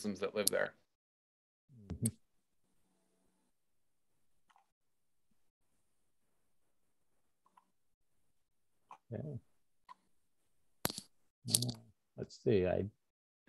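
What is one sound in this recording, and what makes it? A young man speaks over an online call in short bursts with long pauses.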